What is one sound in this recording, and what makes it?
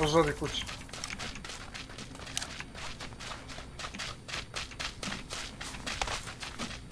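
Footsteps crunch quickly over rough, snowy ground.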